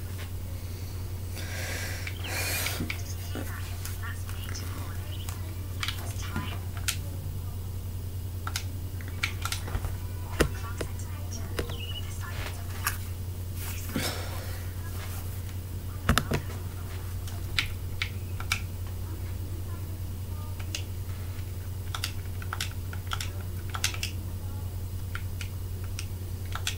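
A teenage boy speaks quietly close to a microphone.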